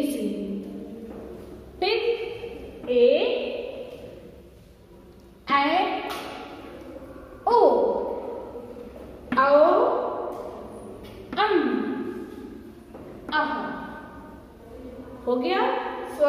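A young woman recites slowly and clearly in a room that echoes, pausing between words.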